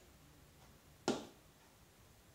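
A plastic funnel is set down with a hollow knock.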